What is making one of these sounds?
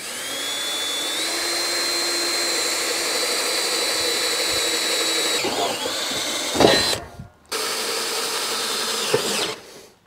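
A cordless drill whirs steadily, pausing briefly before starting up again.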